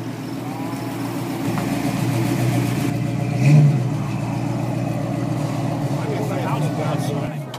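A big car engine idles with a deep, steady rumble close by.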